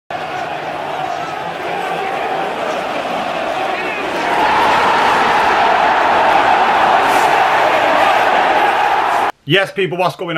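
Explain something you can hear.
A large stadium crowd chants and roars.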